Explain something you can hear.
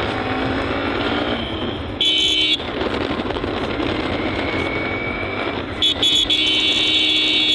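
A vehicle drives along a road with a steady engine hum and tyre noise.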